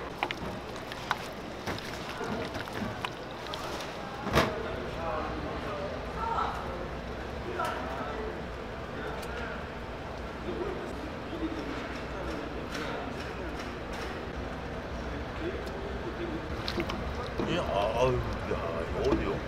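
Gloved hands squelch food in wet batter.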